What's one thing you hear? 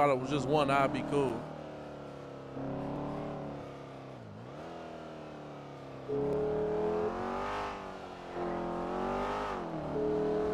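A car engine hums as it drives.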